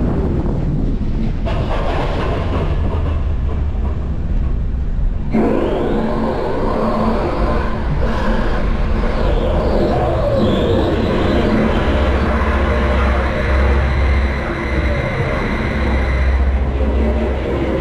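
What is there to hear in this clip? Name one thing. A coaster car rumbles and clatters steadily along its track.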